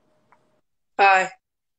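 A young man calls out briefly over an online call.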